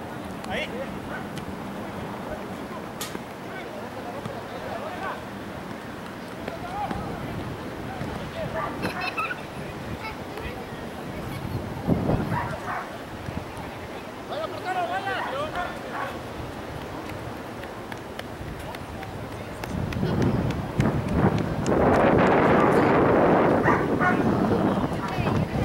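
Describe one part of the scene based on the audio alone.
Young men shout to each other across an open field outdoors.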